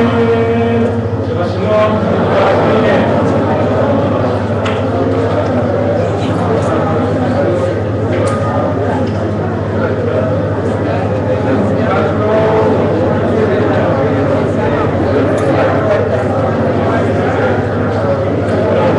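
A crowd chatters and cheers loudly.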